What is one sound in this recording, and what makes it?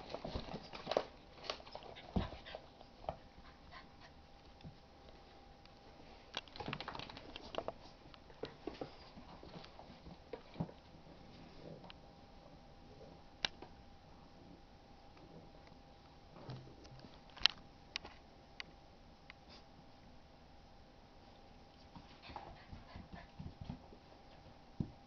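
Dogs scuffle and play-fight nearby.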